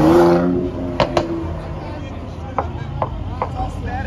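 Sharp pops crackle from a car's exhaust.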